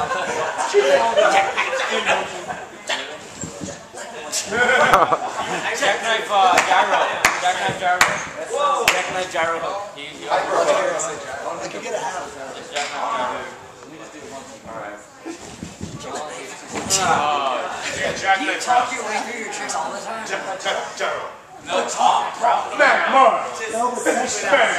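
Young men talk and laugh nearby in a large echoing hall.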